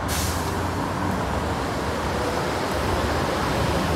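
A bus drives past with an engine rumble.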